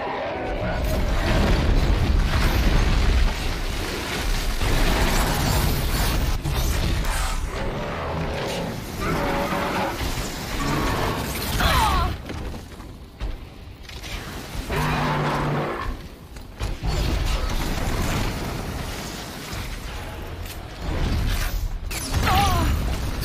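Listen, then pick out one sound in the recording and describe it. Explosions boom and crackle loudly.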